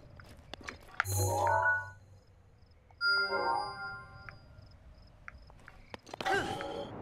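Short electronic chimes and beeps sound.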